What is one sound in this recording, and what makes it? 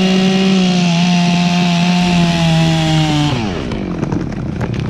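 A chainsaw roars steadily, then winds down.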